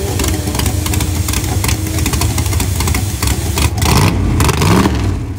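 A drag car engine roars loudly with rapid crackling pops.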